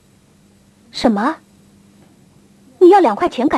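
A woman speaks in short, tense phrases close by.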